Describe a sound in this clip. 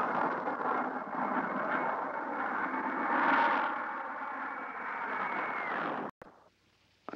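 A propeller plane drones steadily overhead.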